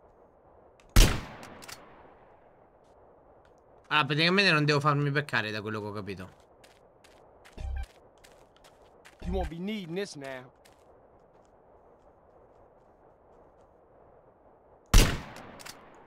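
A rifle shot cracks loudly and echoes away.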